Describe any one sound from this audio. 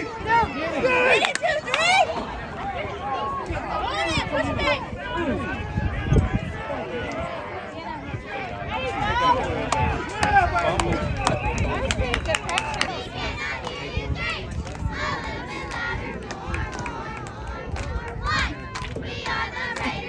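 A crowd of spectators cheers and shouts nearby, outdoors.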